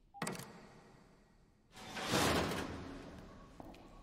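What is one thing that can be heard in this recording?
A heavy lock clunks open with a loud mechanical rumble.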